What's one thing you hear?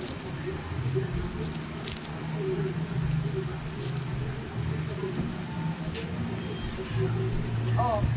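Scissors snip through paper.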